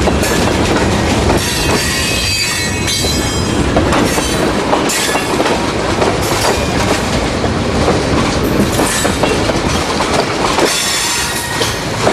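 Train wheels clack and squeal on the rails.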